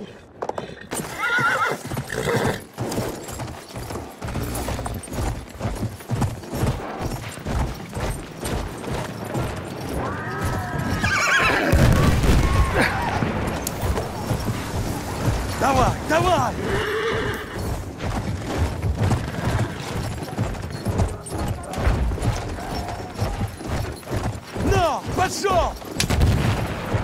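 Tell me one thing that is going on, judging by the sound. A horse gallops, its hooves pounding quickly over rough ground.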